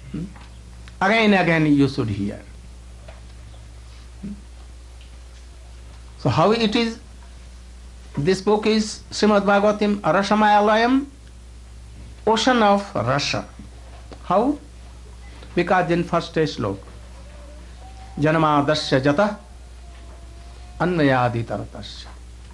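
An elderly man speaks slowly into a microphone, in bursts with long pauses.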